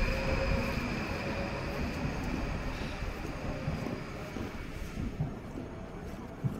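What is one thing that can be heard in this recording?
A train rumbles away and fades into the distance.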